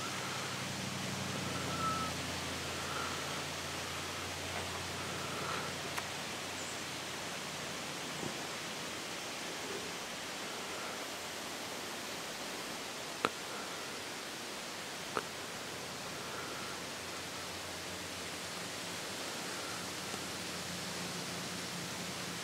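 People push through dry brush, leaves and twigs rustling as they walk.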